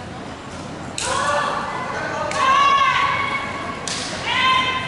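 Young people shout sharp calls in a large echoing hall.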